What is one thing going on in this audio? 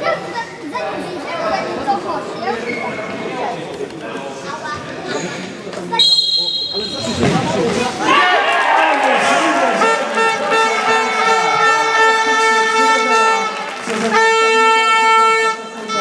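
A ball is kicked with dull thumps in an echoing hall.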